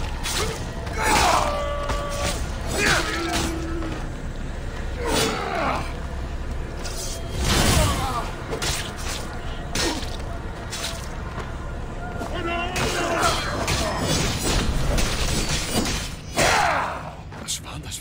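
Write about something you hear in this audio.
Male fighters grunt and cry out with effort.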